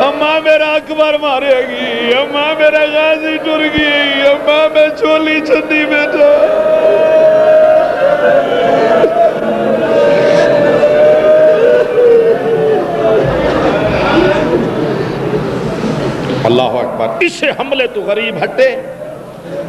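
A man speaks passionately through a microphone and loudspeakers, chanting in a rising, sing-song voice.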